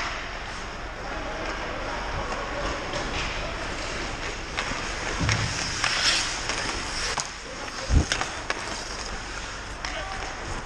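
Skates scrape and hiss on ice.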